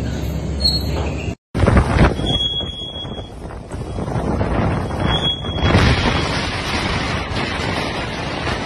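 Rough waves churn and splash.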